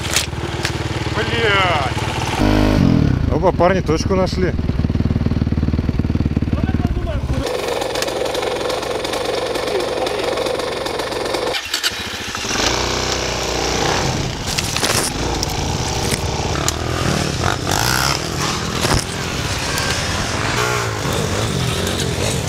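A dirt bike engine revs and roars close by.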